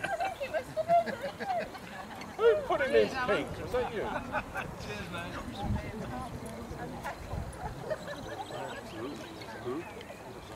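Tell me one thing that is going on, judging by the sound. A crowd of men and women chat outdoors.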